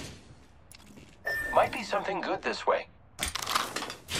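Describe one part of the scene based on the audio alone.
A game character picks up items with short clicks and rustles.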